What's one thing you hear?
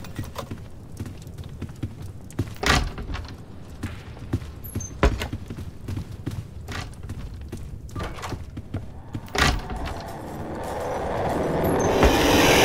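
Quick footsteps thud on a wooden floor.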